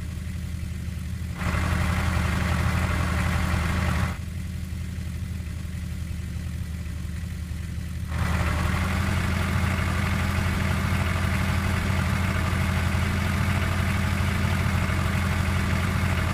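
A tractor engine rumbles steadily, growing louder and rougher at times.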